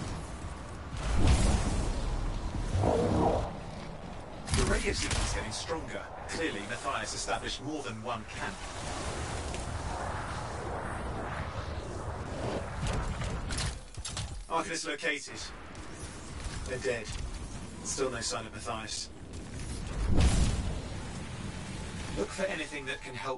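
Game weapons blast and crackle with energy bursts.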